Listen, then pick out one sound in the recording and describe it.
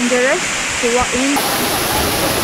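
A young woman speaks close to the microphone outdoors.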